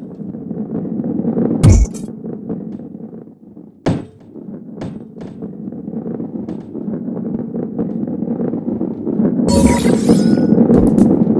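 A ball rolls and rumbles steadily along a track.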